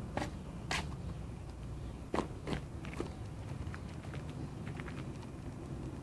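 Footsteps crunch on a sandy, gravelly ground outdoors.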